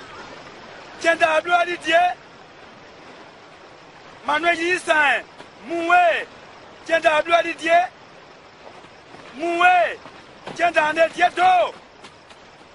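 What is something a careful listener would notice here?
A man speaks out loudly and with feeling.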